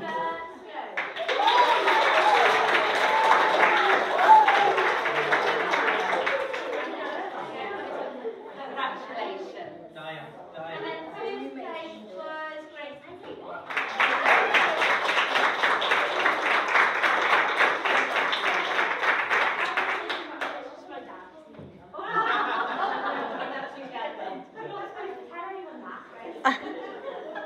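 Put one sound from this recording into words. A large group of children clap their hands.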